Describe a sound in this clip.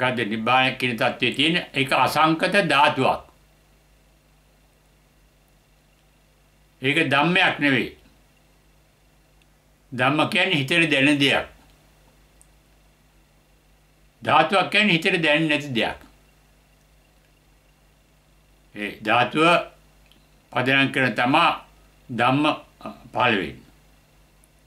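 An elderly man speaks calmly and slowly close to a microphone, in short phrases with long pauses.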